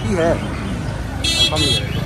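A motor rickshaw putters past close by.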